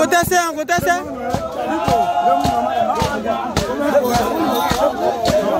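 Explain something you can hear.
A group of men sing loudly together outdoors.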